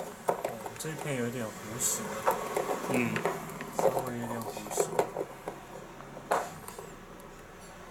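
A wrench clicks and scrapes on a metal nut.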